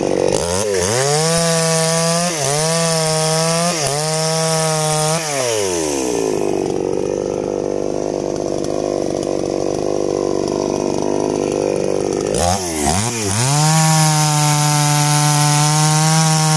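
A chainsaw cuts through wood.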